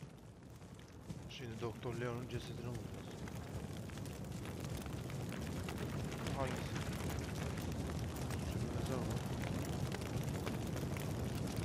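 A fire crackles and roars, growing louder.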